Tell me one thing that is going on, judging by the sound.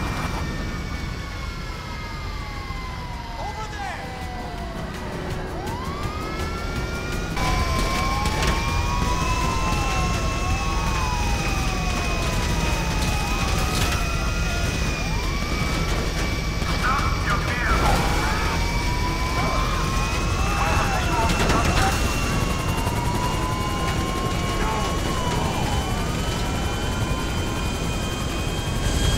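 Police sirens wail, rising and falling.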